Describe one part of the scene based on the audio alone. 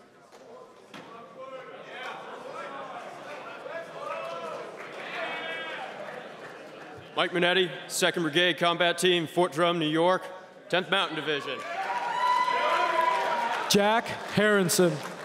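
A large crowd murmurs and chatters in a large hall.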